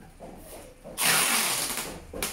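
A roll of packing tape is pulled off with a loud rasp.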